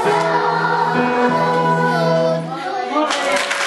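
A choir of children sings a long held note in a large hall.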